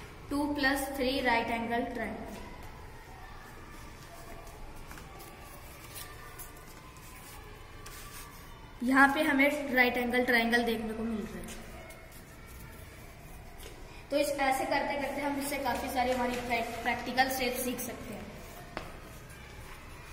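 Stiff paper rustles and slides as pieces are moved about.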